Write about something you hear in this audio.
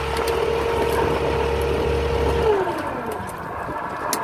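An electric reel motor whirs steadily, then winds down and stops.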